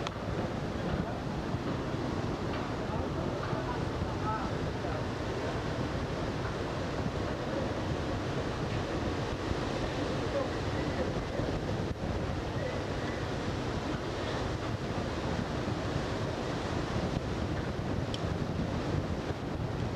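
Wind gusts loudly past outdoors.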